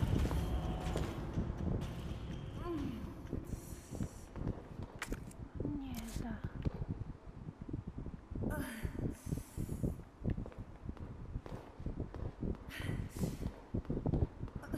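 Footsteps tap on a hard floor at a walking pace.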